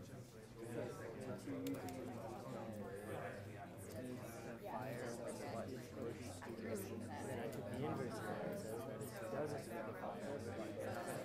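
Several young people talk at once.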